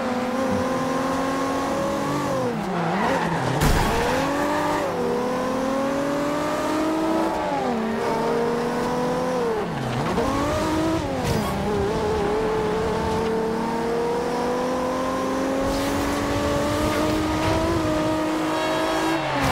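A sports car engine roars, revving up and dropping as it shifts gears.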